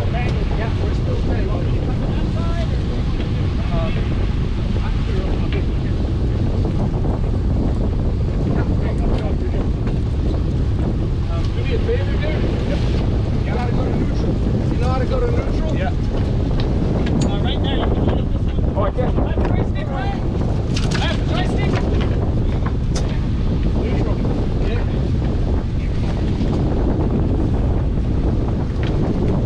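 Wind blows hard over the open sea.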